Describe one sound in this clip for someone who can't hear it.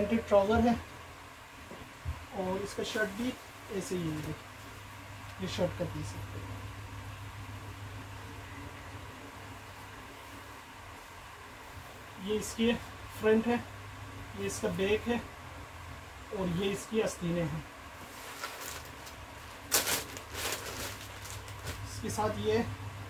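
Cloth rustles softly as it is unfolded and handled.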